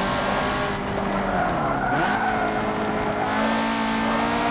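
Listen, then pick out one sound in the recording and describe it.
Car tyres squeal as the car slides through a bend.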